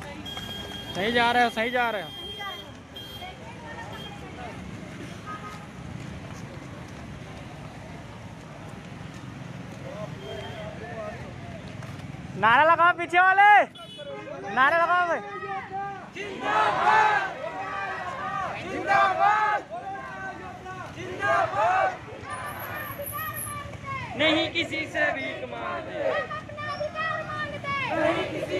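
A crowd of young men and women chant loudly outdoors.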